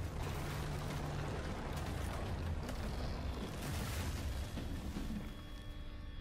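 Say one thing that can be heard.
A large wooden structure creaks, cracks and crashes down with a deep rumble.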